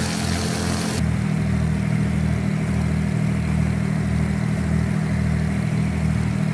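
A propeller engine hums, muffled, inside a cabin.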